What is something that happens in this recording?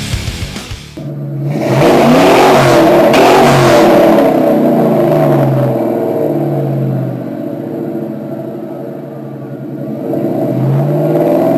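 A car engine starts with a roar and settles into a loud, lumpy idle with a rumbling exhaust.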